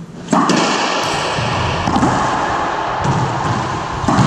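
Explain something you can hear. A racquetball smacks hard against the walls and echoes around a bare court.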